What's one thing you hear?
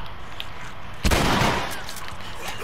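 A gunshot fires with a sharp bang.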